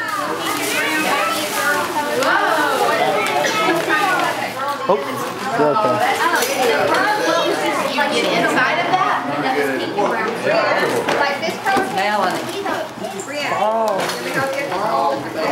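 Gift wrap and paper bags rustle and crinkle.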